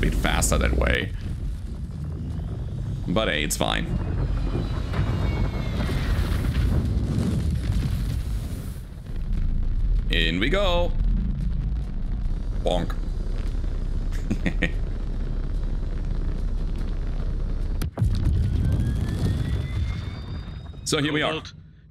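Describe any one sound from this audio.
Spaceship engines roar with a deep, steady rumble.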